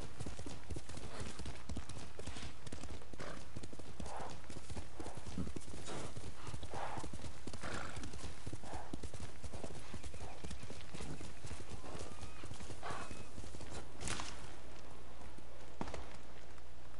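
A horse's hooves thud and clop steadily over the ground.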